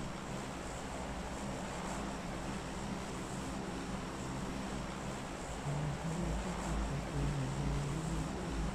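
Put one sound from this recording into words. A plane engine drones steadily.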